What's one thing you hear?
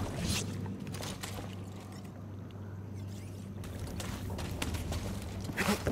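Footsteps patter on grass.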